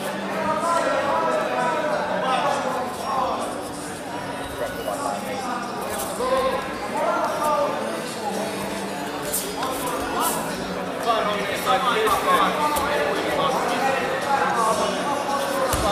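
Men call out loudly in a large echoing hall.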